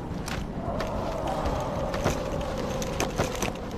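Heavy blows thud and smack in a fight.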